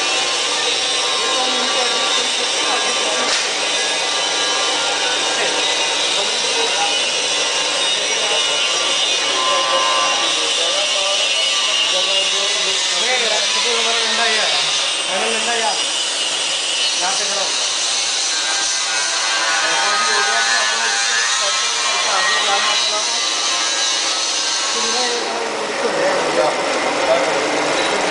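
A vacuum pump hums steadily.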